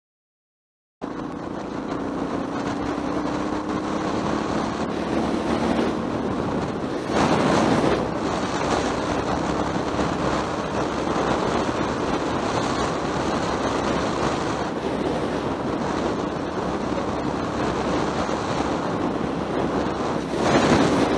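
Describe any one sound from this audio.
A vehicle engine hums steadily.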